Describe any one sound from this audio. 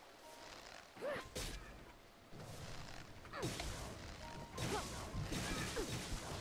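A creature shrieks in rising and falling cries.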